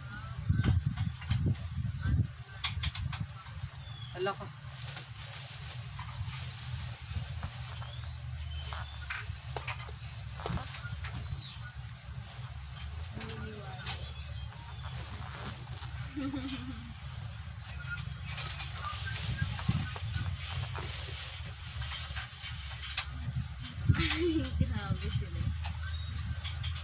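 Porcelain dishes clink and rattle close by.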